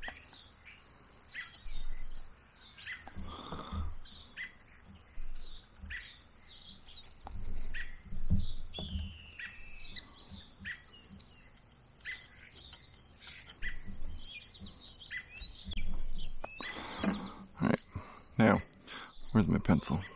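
A knife scrapes and shaves wood in short strokes.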